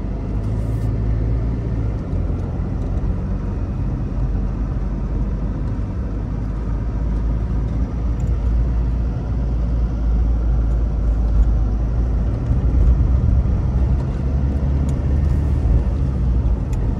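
Tyres rumble on a rough road.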